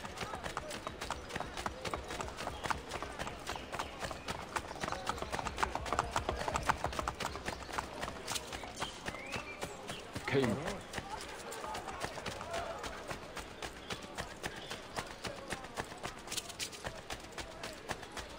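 Quick footsteps run on stone paving.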